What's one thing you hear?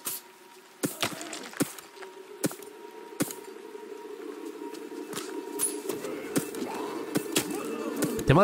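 Blades strike and clash in a fight.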